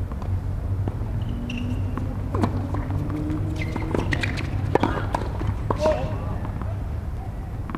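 Sneakers squeak on a hard court.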